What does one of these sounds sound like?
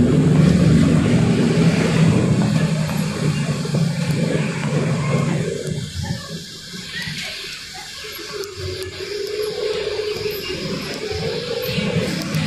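The inside of a bus rattles and hums as it drives.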